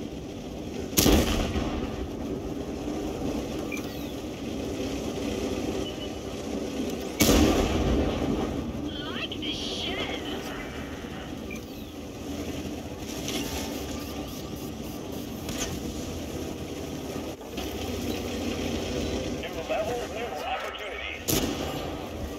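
A tank cannon fires with loud booming blasts.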